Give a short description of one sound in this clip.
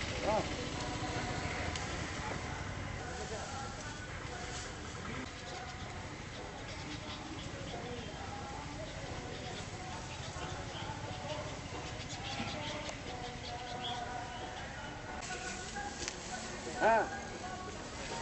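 Men chat in the background.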